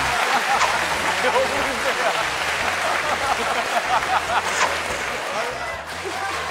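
Men and women laugh loudly.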